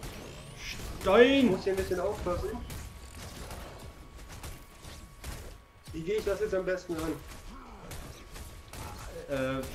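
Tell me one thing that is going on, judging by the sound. Heavy blows land with sharp thuds in quick bursts.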